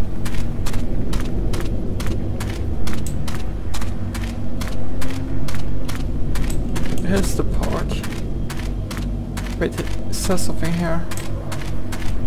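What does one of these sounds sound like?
Footsteps crunch quickly and steadily over dry leaves.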